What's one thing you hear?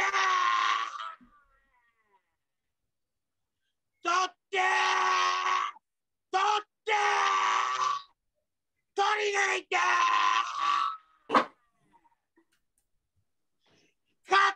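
A man sings loudly in long, strained bursts through a microphone, with pauses between.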